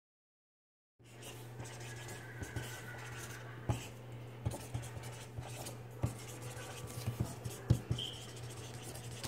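A marker squeaks and taps across paper.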